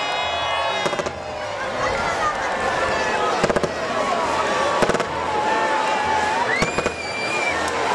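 Fireworks crackle and pop in short bursts.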